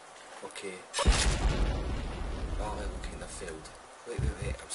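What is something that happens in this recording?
An explosion booms loudly in a video game.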